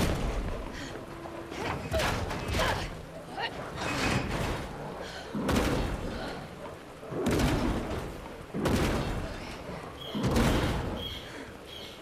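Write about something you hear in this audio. A heavy metal gate rattles and bangs as it is pushed and shaken.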